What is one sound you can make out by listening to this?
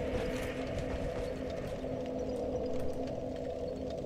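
A bonfire crackles.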